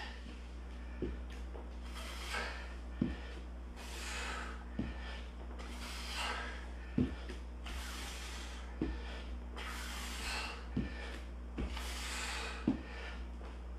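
A dumbbell knocks against a hard floor again and again.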